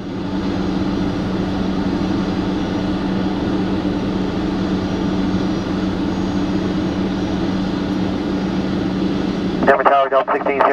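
An idling engine hums steadily nearby.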